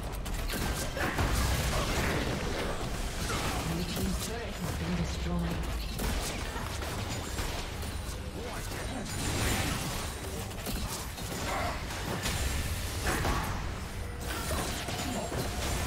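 Weapons clash and hit repeatedly.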